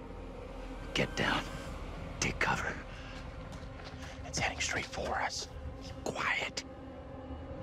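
A man speaks tensely in a low voice, close by.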